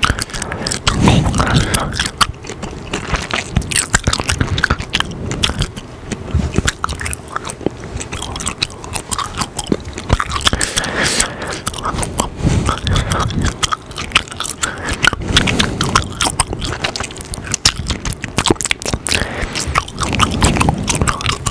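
Mouth clicks and lip smacks sound close to a microphone.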